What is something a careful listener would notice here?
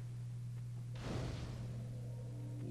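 A bonfire ignites with a whoosh.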